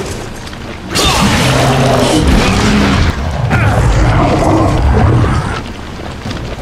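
A monstrous creature roars and growls loudly.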